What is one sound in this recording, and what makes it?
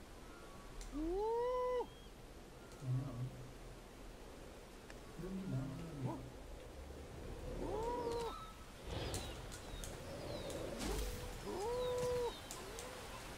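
An ape hoots loudly.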